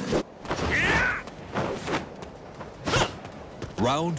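A kick lands with a heavy thud.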